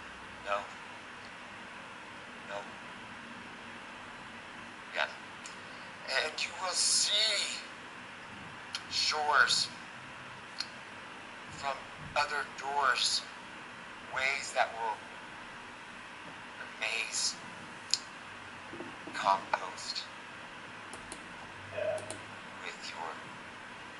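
A man talks with animation in short bursts through a phone's small loudspeaker.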